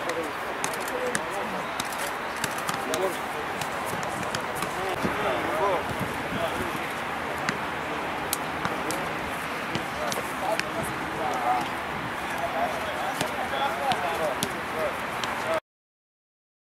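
Men call out to each other outdoors, some way off.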